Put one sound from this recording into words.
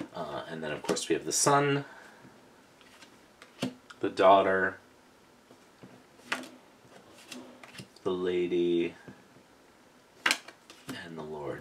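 Playing cards slide and tap softly against each other.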